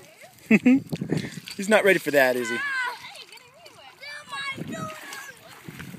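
Children splash through shallow water.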